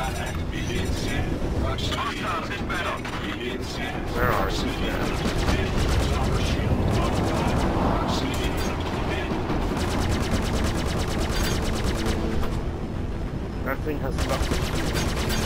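Laser cannons fire in quick, sharp bursts.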